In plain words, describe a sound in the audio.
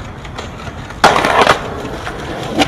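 Skateboard wheels grind and scrape along a concrete ledge.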